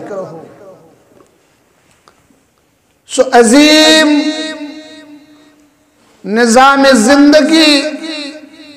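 A man speaks loudly into a microphone in a long, drawn-out chanting voice.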